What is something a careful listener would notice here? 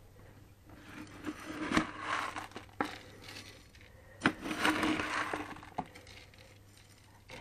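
A scoop digs into loose grain with a dry rustling pour.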